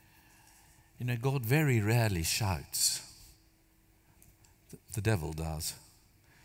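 An elderly man speaks calmly through a headset microphone.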